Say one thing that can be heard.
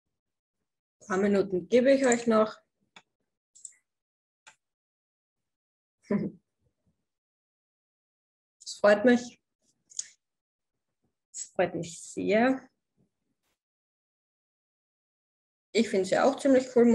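A young woman speaks calmly in short bursts, heard through an online call.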